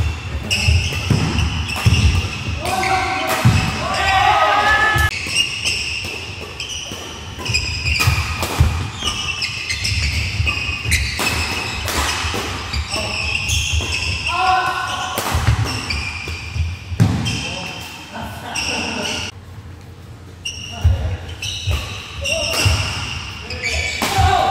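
Rackets smack a shuttlecock back and forth in a large echoing hall.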